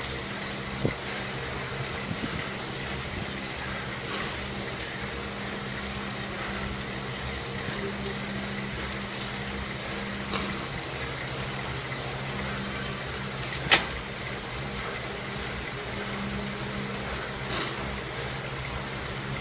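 An indoor bike trainer whirs steadily.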